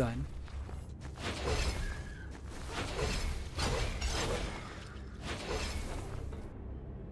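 Sword slashes and impacts ring out in quick bursts.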